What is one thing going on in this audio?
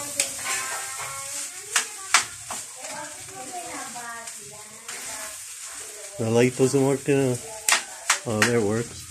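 A metal spatula clinks and scrapes against a frying pan.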